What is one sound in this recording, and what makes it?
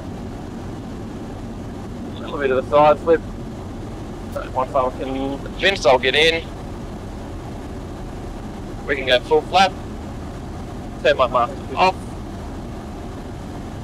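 A small plane's engine drones steadily in the cabin.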